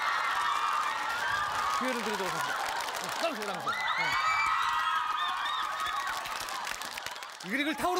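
A studio audience laughs and shrieks.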